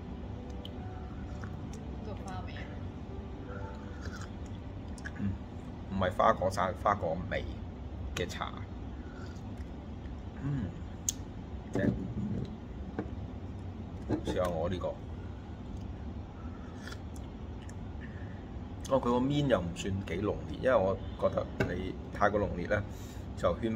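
A man sips tea from a glass.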